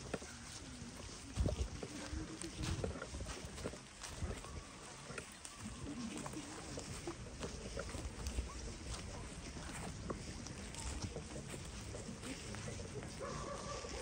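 Dry leaves rustle and crunch underfoot.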